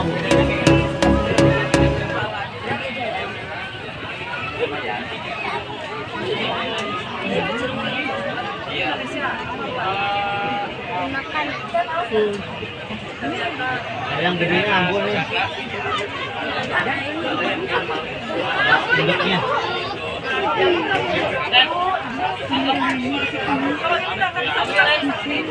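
A crowd chatters all around, outdoors.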